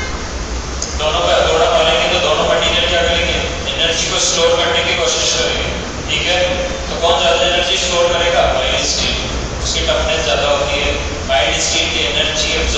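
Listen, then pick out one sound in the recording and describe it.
A man speaks steadily through a clip-on microphone, as if lecturing.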